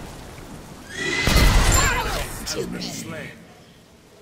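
Blows and spell blasts clash in a fight.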